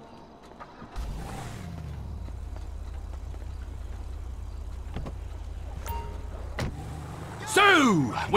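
A car engine starts and idles with a low, steady hum.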